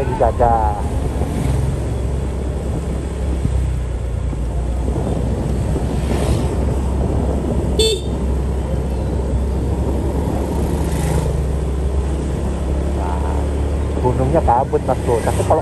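Motorbikes ride past one after another.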